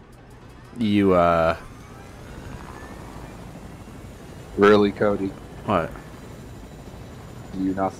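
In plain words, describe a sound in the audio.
A helicopter's rotor whirs steadily close by.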